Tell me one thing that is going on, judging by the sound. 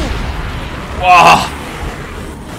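A young man shouts with excitement into a close microphone.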